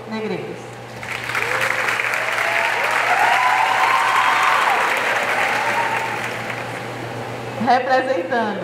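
A crowd applauds and cheers.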